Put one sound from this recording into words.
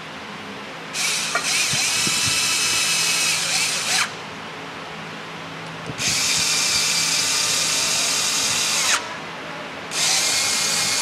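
A cordless ratchet whirs in short bursts.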